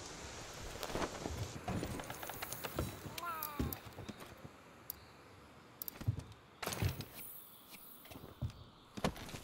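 Soft clicks and chimes sound in quick succession.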